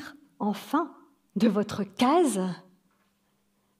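An elderly woman speaks with animation through a microphone.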